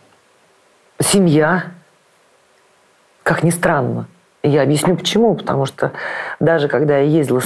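A middle-aged woman speaks calmly and thoughtfully, close to a microphone.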